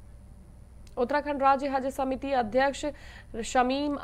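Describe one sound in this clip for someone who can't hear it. A young woman speaks calmly and clearly into a close microphone, reading out.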